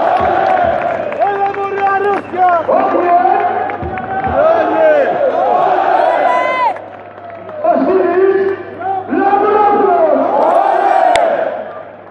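A large stadium crowd sings and chants loudly in the open air.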